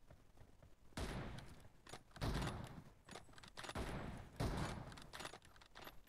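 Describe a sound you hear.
Gunshots ring out in loud, rapid bursts.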